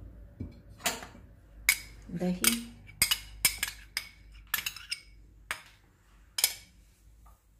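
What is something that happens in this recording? A spoon taps and scrapes against a bowl.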